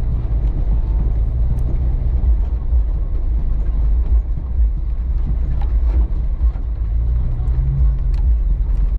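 Tyres crunch over packed snow.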